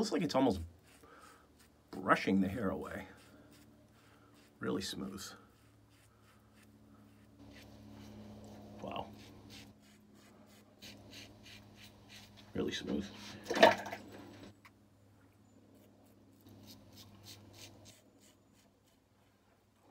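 A razor scrapes across stubble in short, quick strokes.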